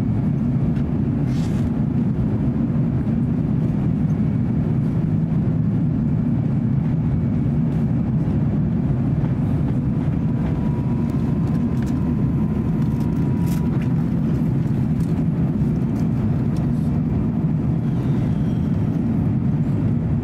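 A jet engine roars steadily in a loud, low drone inside the cabin.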